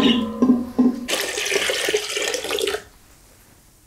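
Water pours and splashes into a metal pot.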